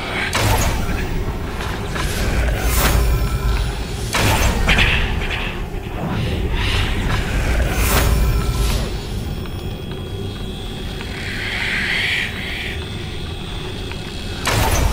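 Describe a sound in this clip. An arrow is loosed from a bow with a sharp whoosh.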